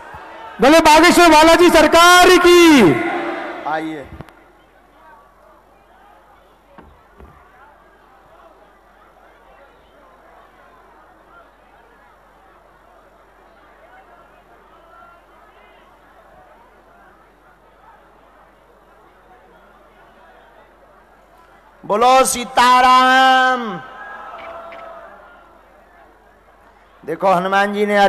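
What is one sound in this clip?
A young man sings loudly through a microphone.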